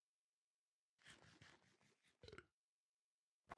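A character chews and munches food noisily.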